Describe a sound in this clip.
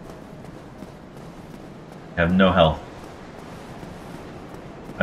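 Armored footsteps run quickly over stone.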